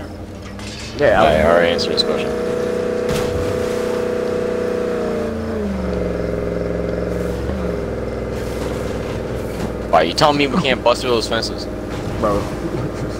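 A truck engine starts up and hums steadily as the truck drives along.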